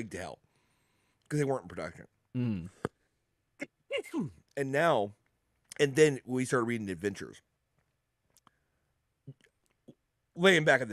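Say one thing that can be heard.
A man speaks calmly into a close microphone over an online call.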